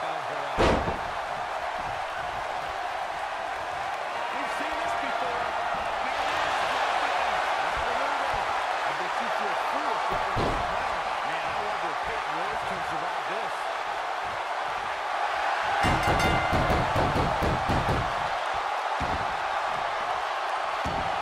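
A large crowd cheers and roars steadily in a big echoing arena.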